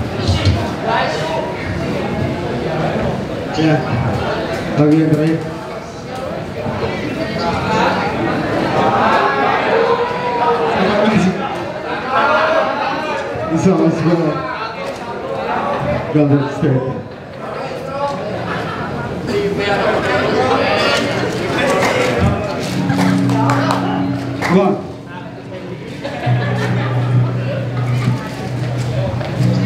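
A loud band plays heavy music through loudspeakers outdoors.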